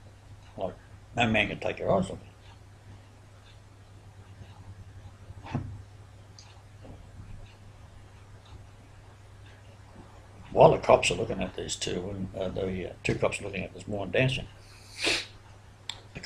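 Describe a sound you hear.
An elderly man speaks calmly and close by, as if over an online call, with pauses.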